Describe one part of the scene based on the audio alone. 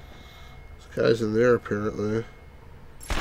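A middle-aged man talks with animation into a microphone.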